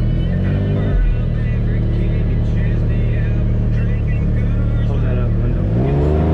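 An engine hums steadily and revs up near the end.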